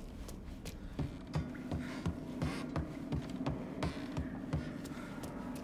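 Footsteps thump on wooden boards at a quick, even pace.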